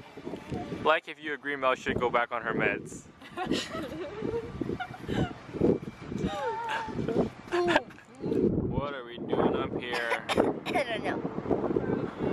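Young women laugh and chatter close by.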